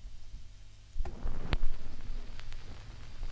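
Music begins playing from the record.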